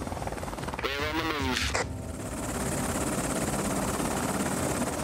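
A helicopter's rotor thrums steadily.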